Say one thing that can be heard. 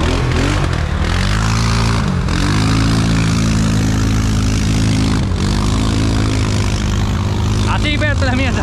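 An engine revs up and down as a vehicle drives over rough ground.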